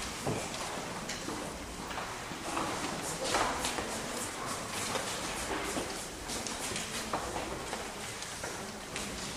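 A man speaks calmly through a microphone, heard over loudspeakers in an echoing hall.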